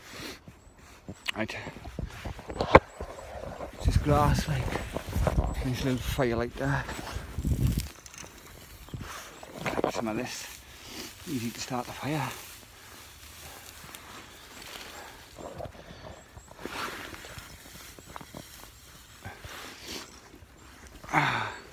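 A man talks casually, close to a phone microphone.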